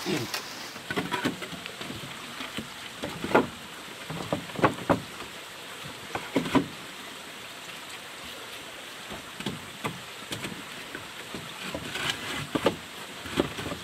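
Hollow bamboo poles knock and clack under a hand.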